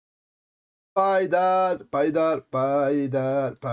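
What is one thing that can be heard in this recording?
A man speaks loudly and with animation into a close microphone.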